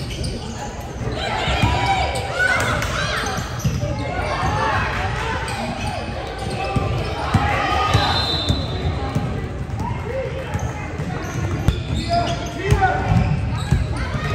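Basketballs bounce on a wooden floor.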